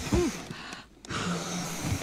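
A young man chuckles softly close by.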